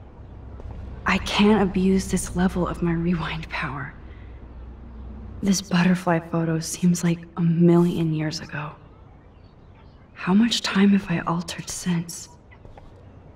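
A man talks.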